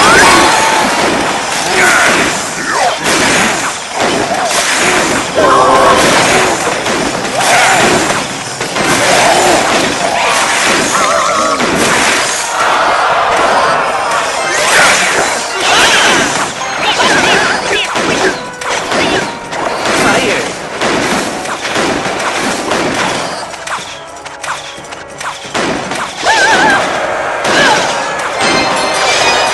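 Game characters clash with battle sounds and small explosions.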